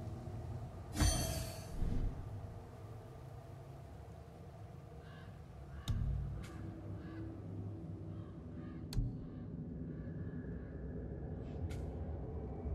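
Soft menu clicks and chimes sound as options are selected.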